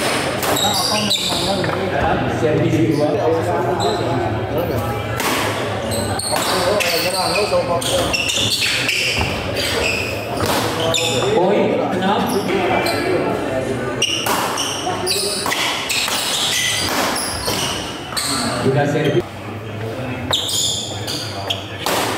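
Shuttlecocks are struck sharply by rackets, echoing in a large hall.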